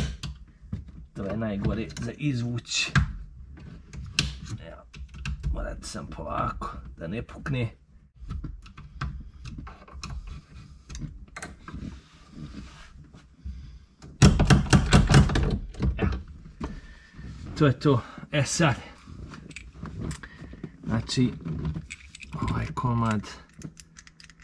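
Small plastic parts click and rattle close by.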